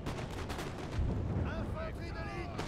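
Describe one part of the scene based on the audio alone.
Cannons boom with a deep rumble.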